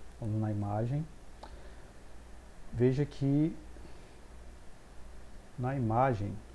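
A man speaks calmly into a close microphone, in short phrases.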